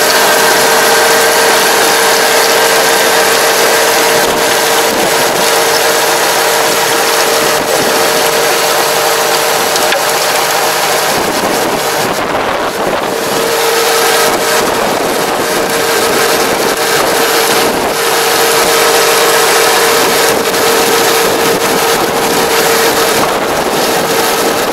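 A tractor engine drones steadily close by.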